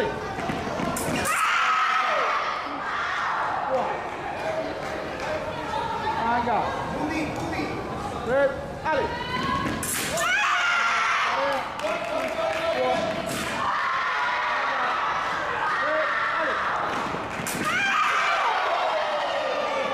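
Shoes squeak on the floor as fencers lunge.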